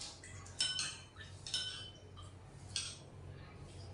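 Dishes and utensils clink sharply a few times.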